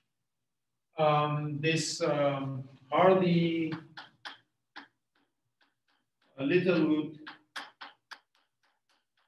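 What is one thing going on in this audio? An older man speaks in a lecturing tone, with pauses.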